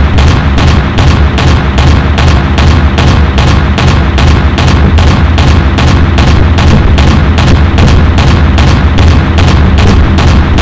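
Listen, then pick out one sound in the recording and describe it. Explosions boom in the sky.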